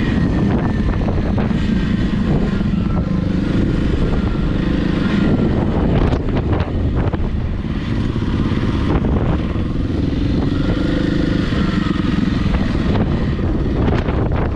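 Wind rumbles against a microphone.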